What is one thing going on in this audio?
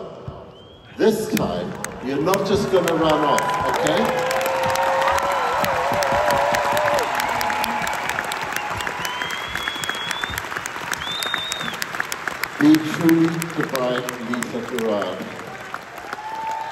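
A woman sings through a loudspeaker with a soaring voice.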